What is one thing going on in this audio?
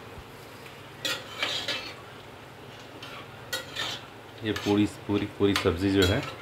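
A metal spoon scrapes and stirs inside a metal pot.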